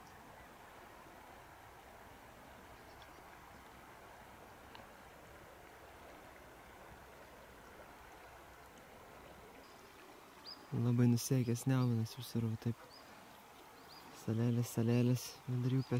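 A river flows gently over shallows.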